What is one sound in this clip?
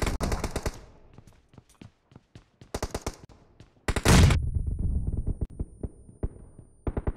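Rapid bursts of rifle fire crack close by.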